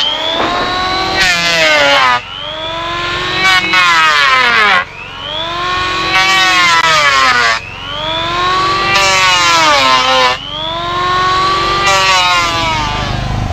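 An electric planer whines in bursts, its pitch dropping as it bites into wood.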